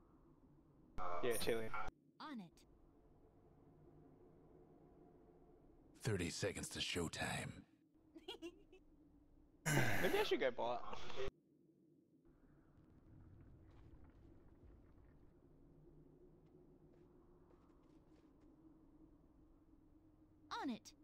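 Game sound effects whoosh and chime in short bursts.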